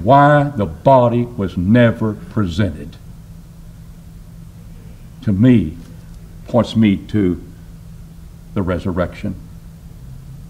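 An older man speaks forcefully into a microphone, in phrases with pauses.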